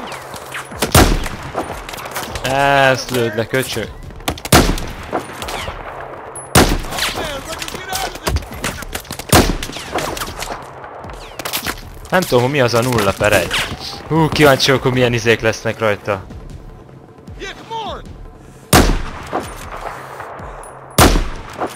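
A sniper rifle fires loud single shots, one at a time.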